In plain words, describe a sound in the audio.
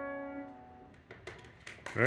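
A piano chord rings out and fades.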